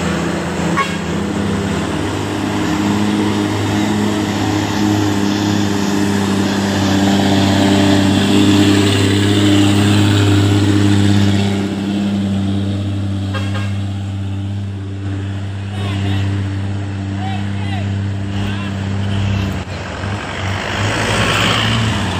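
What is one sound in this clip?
Heavy truck engines rumble and drone as trucks drive past on a road.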